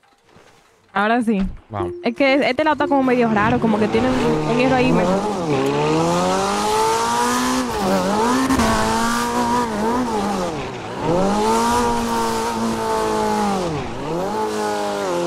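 A sports car engine revs hard, rising and falling as the car speeds off and shifts gears.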